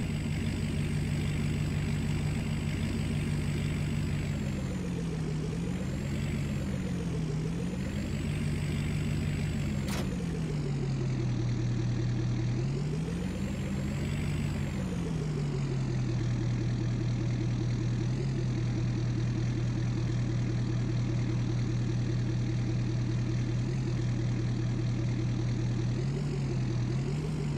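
A truck engine idles steadily and revs up and down.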